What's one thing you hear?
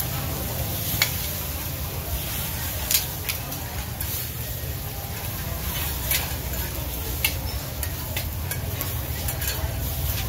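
Batter sizzles and crackles in hot oil.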